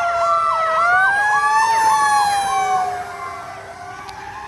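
A fire truck siren yelps in rapid bursts as the truck passes.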